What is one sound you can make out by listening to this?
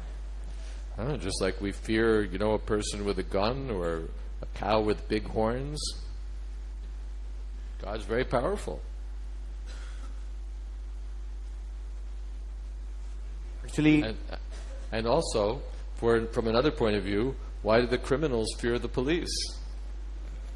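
An older man speaks calmly into a microphone, pausing between phrases.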